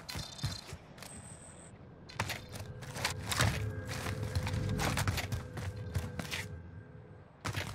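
Footsteps thud quickly on hard stone.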